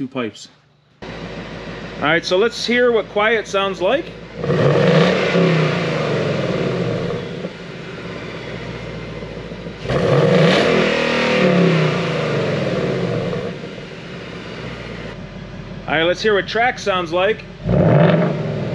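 A car engine idles with a deep exhaust rumble.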